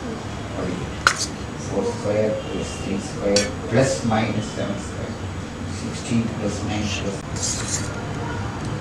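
A metal spoon scrapes and clinks against a metal bowl.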